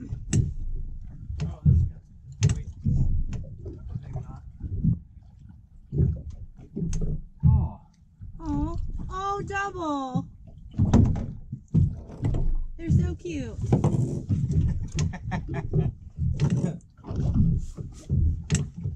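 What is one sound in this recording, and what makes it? An outboard motor idles with a low rumble.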